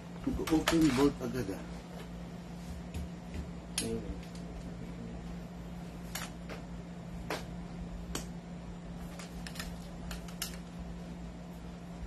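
Metal parts click and rattle as a rifle is handled.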